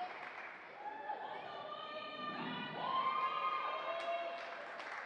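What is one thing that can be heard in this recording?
Young women chant together loudly in a large echoing gym.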